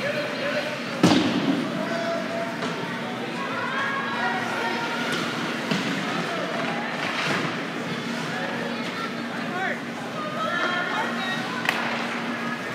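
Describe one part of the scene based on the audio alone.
A hockey stick smacks the puck with a sharp crack.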